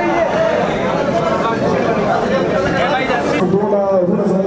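A crowd of men talks and cheers.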